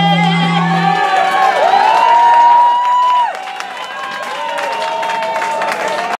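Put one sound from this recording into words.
An electric guitar plays loud bending, wailing notes through an amplifier.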